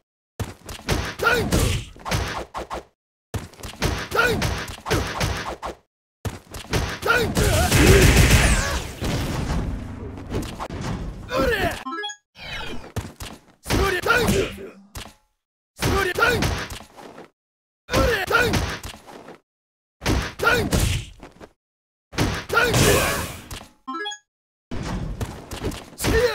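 Game punches and kicks land with heavy thuds and whooshes.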